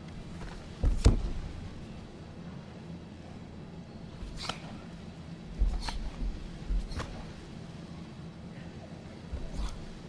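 A karate athlete's uniform snaps sharply with quick strikes.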